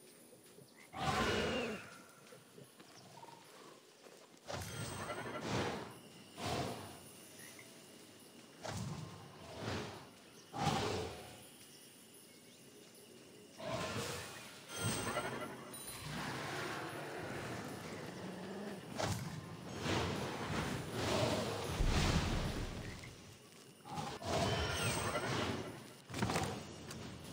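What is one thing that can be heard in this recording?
Game spell effects burst and whoosh in bursts.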